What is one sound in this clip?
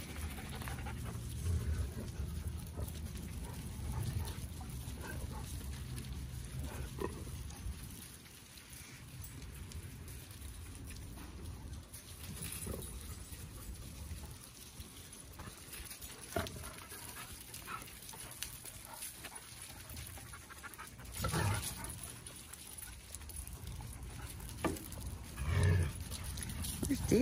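Dogs' paws patter and scuff on gravel outdoors.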